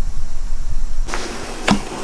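A gas burner hisses steadily under a kettle.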